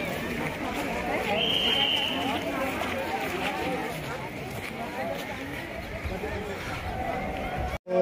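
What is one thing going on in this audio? A crowd of men, women and children chatters outdoors nearby.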